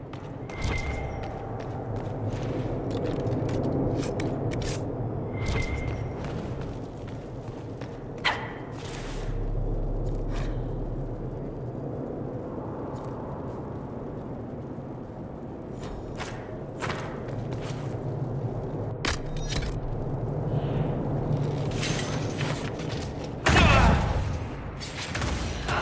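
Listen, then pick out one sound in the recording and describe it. Footsteps clack on a hard stone floor.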